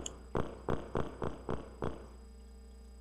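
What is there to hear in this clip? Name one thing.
Footsteps tap evenly on a hard floor.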